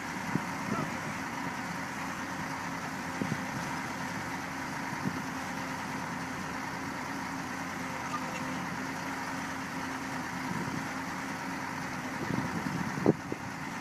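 Heavy diesel engines rumble and whine steadily outdoors.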